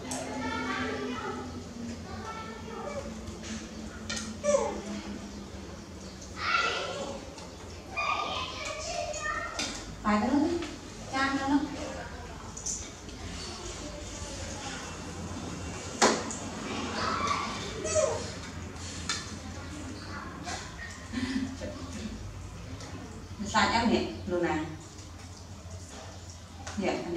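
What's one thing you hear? A woman speaks gently and close by.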